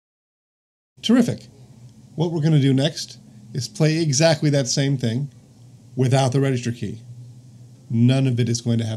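A middle-aged man speaks calmly and clearly into a close microphone.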